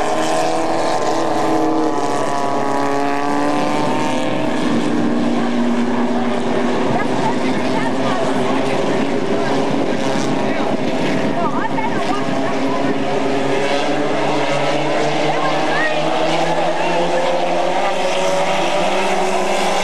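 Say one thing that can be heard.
Race car engines roar loudly as cars speed around a track.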